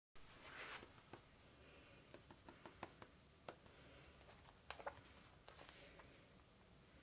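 Pages of a book rustle and flick close by.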